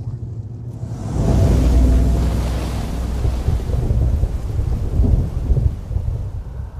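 A car crashes with a loud roaring rumble that slowly fades.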